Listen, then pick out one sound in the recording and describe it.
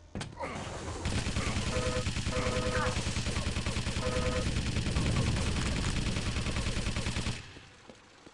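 An electric gun buzzes and crackles steadily while firing.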